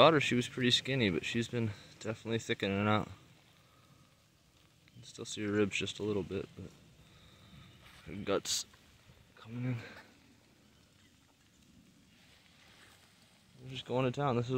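A cow tears and crunches grass while grazing.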